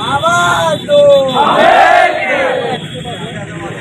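Men shout slogans loudly in a crowd outdoors.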